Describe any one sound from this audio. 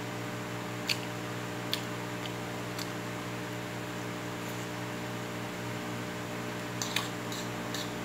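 A metal spoon clinks against a plate.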